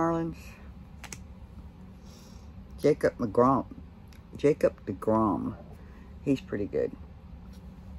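An older man speaks calmly and close to the microphone, in short bursts.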